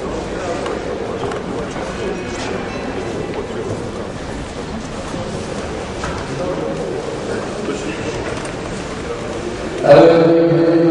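Spectators murmur in a large echoing hall.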